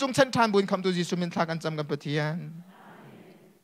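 A young man speaks loudly into a microphone in an echoing hall.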